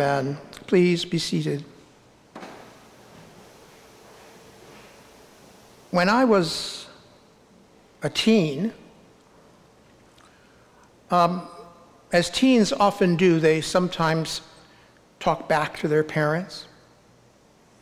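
A middle-aged man speaks calmly and slowly into a microphone, with pauses, in a large echoing hall.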